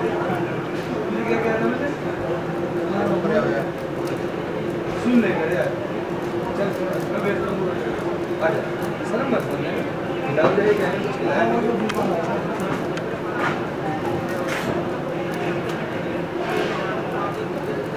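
Several men and women chat nearby in a lively hum of voices.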